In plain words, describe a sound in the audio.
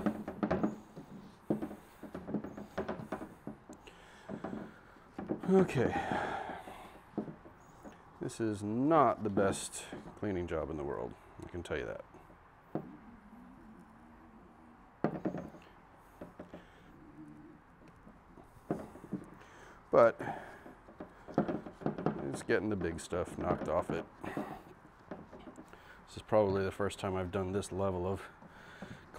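Metal parts clink and knock on a workbench.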